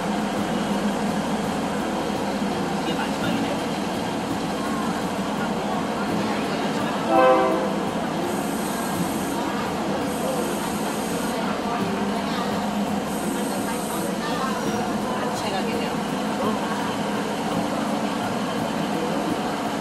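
A train rumbles and rattles slowly along the tracks.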